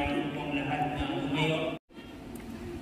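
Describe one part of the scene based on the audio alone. A man speaks through a loudspeaker in an echoing hall.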